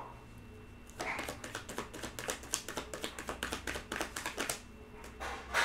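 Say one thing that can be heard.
Cards riffle and flick rapidly as they are shuffled.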